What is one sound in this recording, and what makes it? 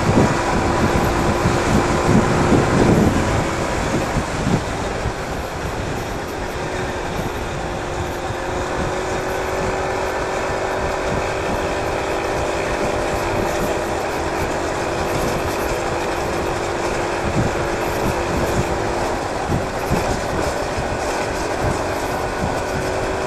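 Wind rushes past a microphone.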